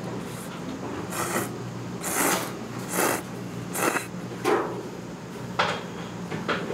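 A young woman slurps noodles loudly, close by.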